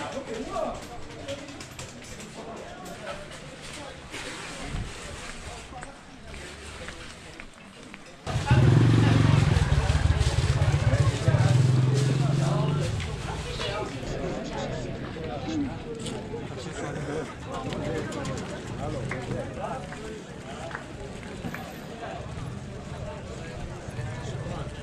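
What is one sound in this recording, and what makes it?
A busy crowd chatters outdoors.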